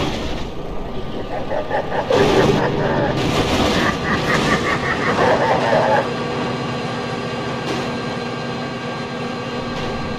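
A locomotive rumbles along the rails.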